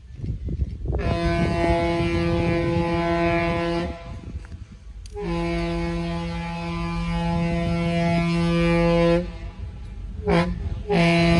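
A train horn blows long blasts in the distance.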